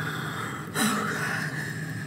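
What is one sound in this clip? A young woman gasps and breathes hard close by.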